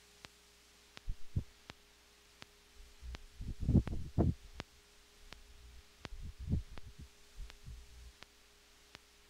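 A steel guitar plays a few low, twangy notes.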